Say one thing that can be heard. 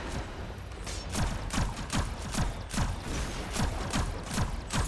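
A rifle fires a quick series of shots.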